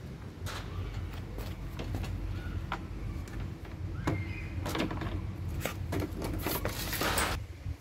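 A plastic pet carrier door rattles and clicks shut.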